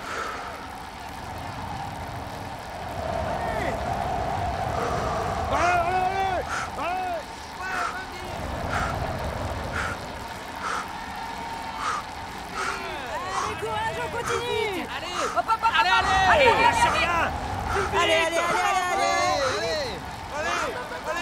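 A bicycle rolls steadily along a paved road.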